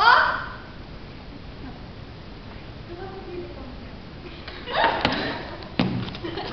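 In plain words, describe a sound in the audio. A young girl speaks with animation on a stage.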